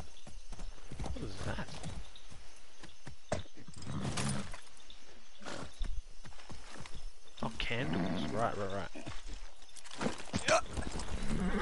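A man talks casually into a headset microphone.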